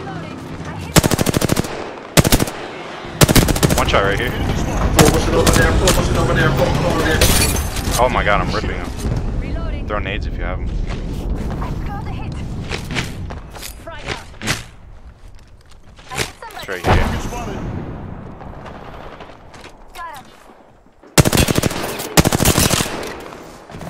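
Gunshots from a rifle ring out in loud, rapid bursts.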